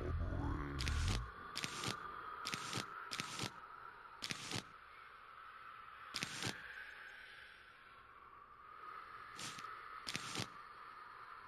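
Short game clicks sound as items are picked one after another.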